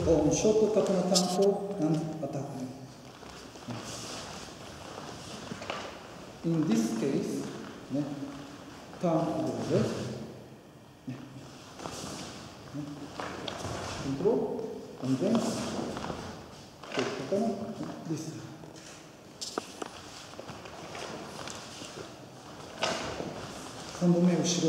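An elderly man explains calmly in a large echoing hall.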